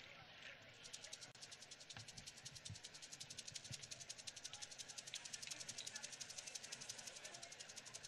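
Rattles shake in a fast, steady rhythm.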